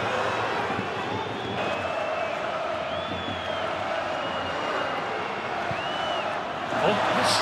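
Fans in a stadium crowd whistle shrilly now and then.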